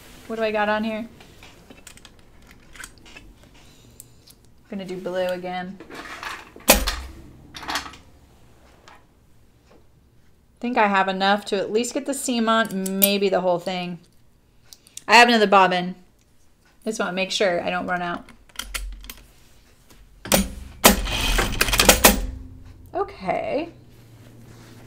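An older woman talks calmly into a close microphone.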